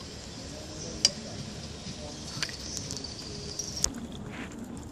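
Glass clinks as a coffee brewer's top part is lifted out.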